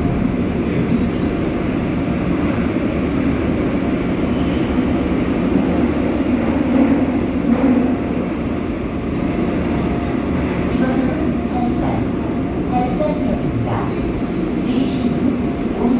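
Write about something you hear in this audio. The carriage rattles and creaks as it moves.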